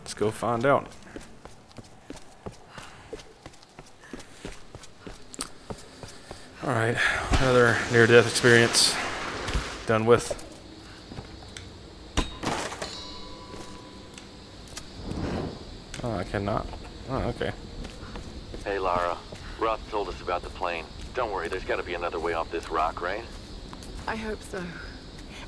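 Footsteps tread quickly over stone and grass.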